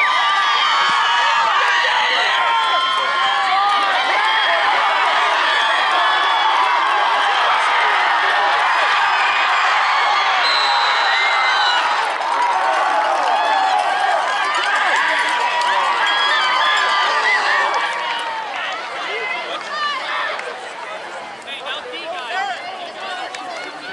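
A large crowd cheers and shouts loudly outdoors, then quietens.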